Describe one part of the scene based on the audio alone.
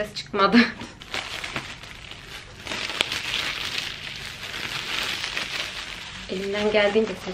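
A plastic bag rustles and crackles in the hands.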